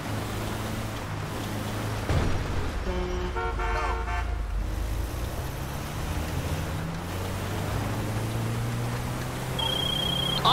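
A van engine hums steadily as it drives.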